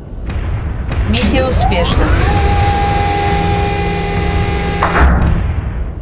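A heavy metal door slides open with a loud mechanical rumble.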